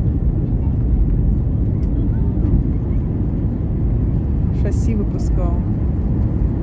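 A jet engine roars with a steady, deep rumble from inside an airliner cabin.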